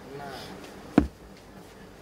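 A phone is set down on a table with a knock.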